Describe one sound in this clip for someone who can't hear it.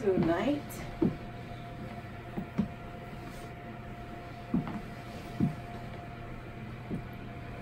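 High heels knock on a wooden floor as a woman walks.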